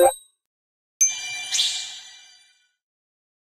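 A bright chime rings and fades.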